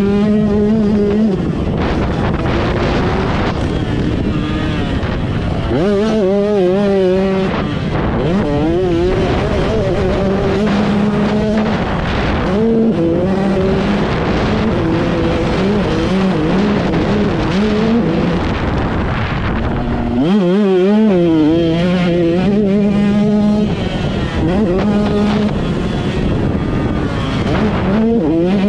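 A dirt bike engine roars close by, revving up and down as gears shift.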